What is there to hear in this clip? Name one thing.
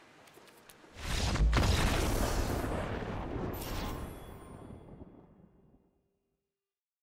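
A deep, booming game sound swells and then slowly fades away.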